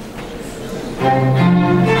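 A string quartet with a cello begins to play loudly.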